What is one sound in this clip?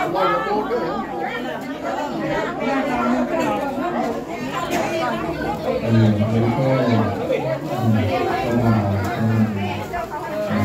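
Several men and women talk and murmur close by.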